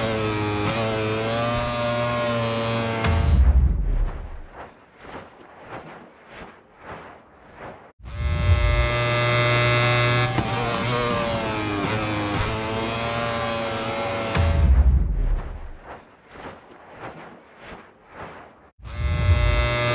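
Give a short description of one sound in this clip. A racing motorcycle engine screams at high revs, its pitch climbing and dropping with gear changes.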